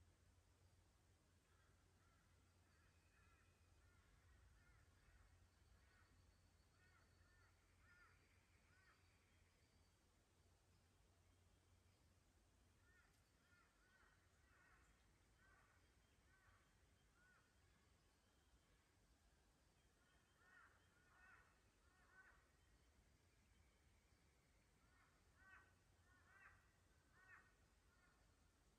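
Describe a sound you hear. Water trickles softly over stones in a shallow creek.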